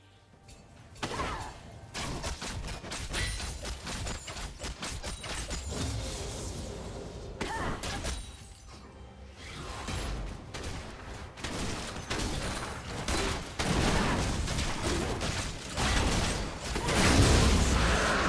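Game spells and attacks crackle and clash in quick bursts.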